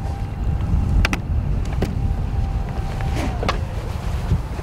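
A boat's hull knocks and clatters as a man moves about.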